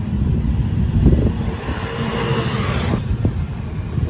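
A motorcycle engine hums as it rides past along a street.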